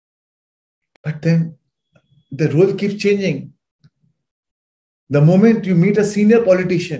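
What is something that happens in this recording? A man speaks with animation through an online call.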